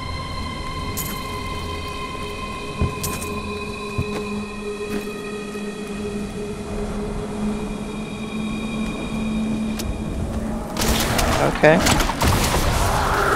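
A character's weapon strikes enemies with sharp hits.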